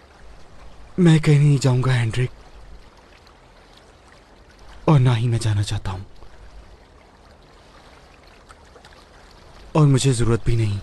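A man speaks in short, low phrases close by.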